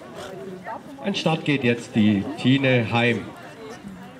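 A woman calls out loudly and excitedly to a dog nearby.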